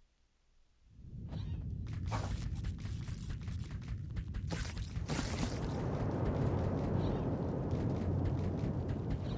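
Heavy footsteps thud on rough ground.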